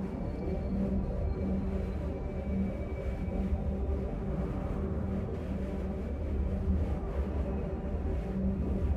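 A hovering speeder bike hums with a low, steady engine drone.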